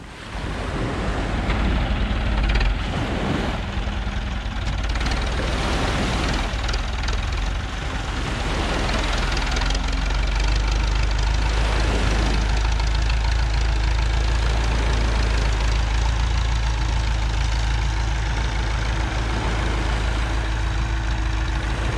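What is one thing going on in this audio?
A tractor engine rumbles steadily nearby.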